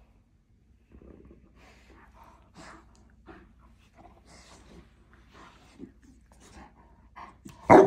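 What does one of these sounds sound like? Dogs growl and grumble playfully up close.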